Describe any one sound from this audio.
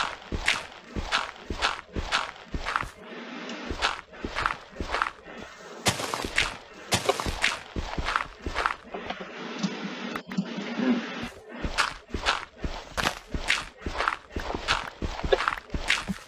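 Dirt blocks crunch and break one after another in a quick, steady rhythm.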